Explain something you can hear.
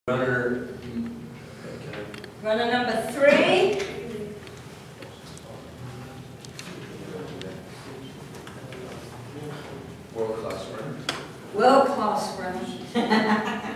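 A woman speaks to a group.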